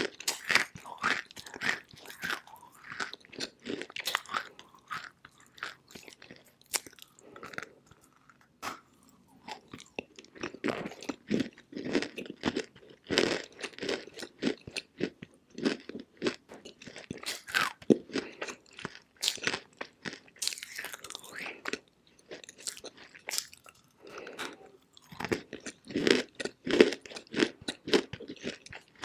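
Fingers rub and crumble a chalky lump close to a microphone.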